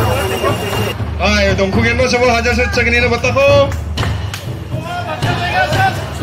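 A man speaks with animation through a microphone and loudspeaker.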